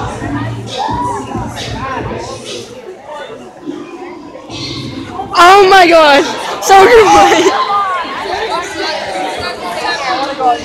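A crowd of young spectators chatters loudly in a large echoing hall.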